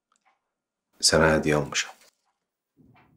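A man speaks loudly and sharply nearby.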